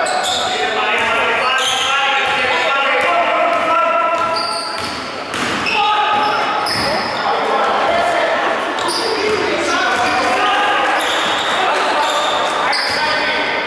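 A crowd of spectators cheers and chants in an echoing hall.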